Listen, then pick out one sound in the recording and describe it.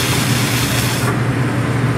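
A metal lid clanks onto a frying pan.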